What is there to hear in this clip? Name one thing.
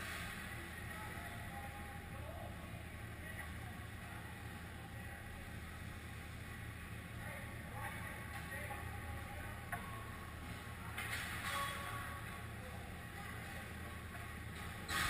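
Skates scrape across ice in a large echoing rink.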